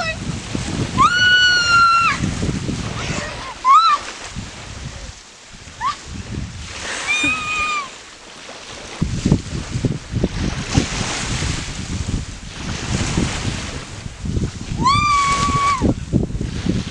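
A young girl whoops loudly nearby.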